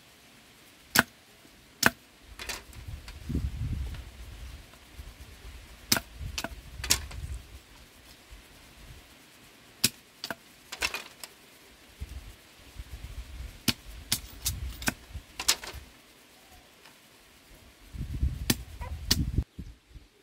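A machete chops sharply into bamboo.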